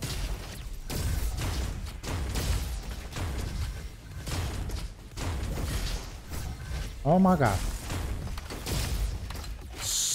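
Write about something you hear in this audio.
Gunshots fire in rapid bursts with loud bangs.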